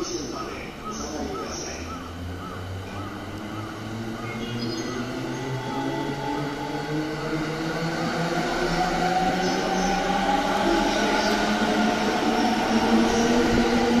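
Train wheels clatter on the rails, gathering speed.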